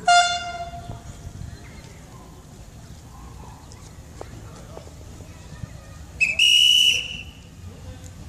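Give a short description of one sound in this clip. A train whistle blows loud and sharp.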